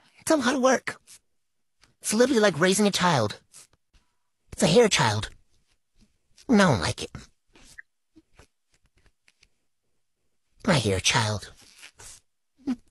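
A young woman talks with animation, close to the microphone.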